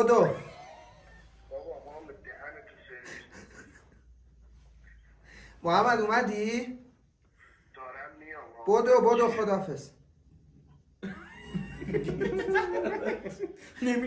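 Young men laugh together close by.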